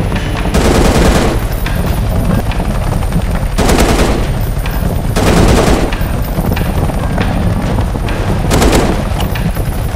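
A rifle fires in short, loud bursts.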